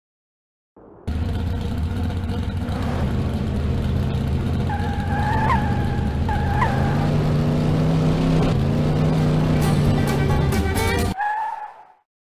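A race car engine hums steadily and revs up.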